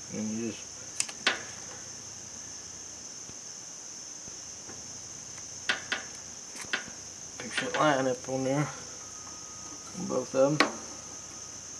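Small plastic hose fittings click and knock as they are pushed together.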